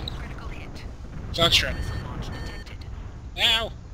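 A warning alarm beeps.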